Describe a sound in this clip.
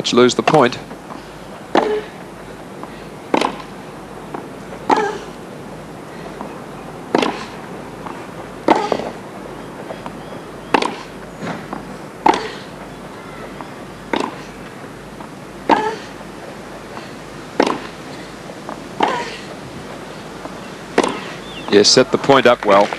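Tennis balls are struck back and forth with sharp, regular pops.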